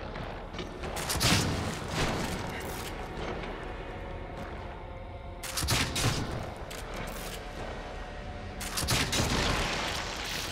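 A crossbow bolt fires with a sharp thud.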